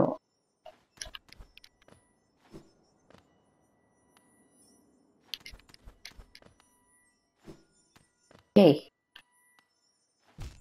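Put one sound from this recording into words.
Light footsteps patter quickly on stone.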